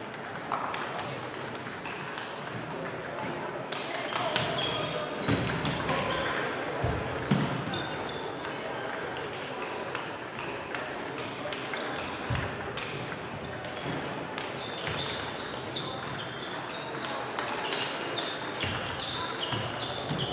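Players' sneakers squeak on the wooden floor.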